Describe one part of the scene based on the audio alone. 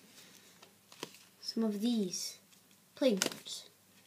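Playing cards rustle in a boy's hands.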